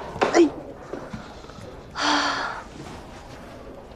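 A young woman cries out in distress.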